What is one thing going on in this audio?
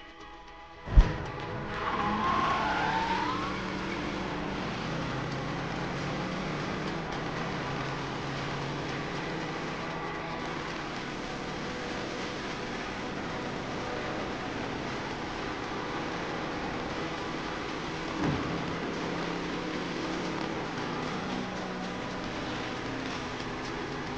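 A car engine rumbles steadily as the car drives along a road.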